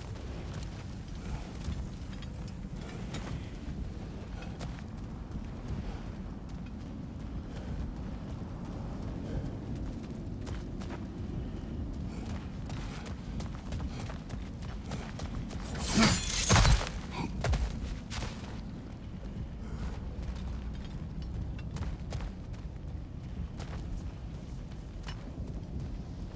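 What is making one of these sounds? Heavy footsteps crunch on gravel.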